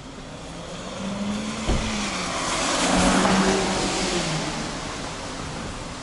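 A car drives past on a wet street, swelling and then fading.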